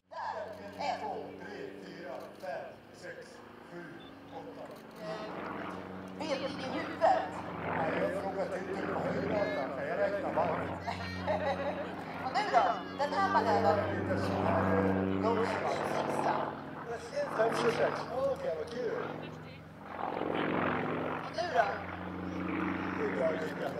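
A small propeller plane's engine drones and roars overhead.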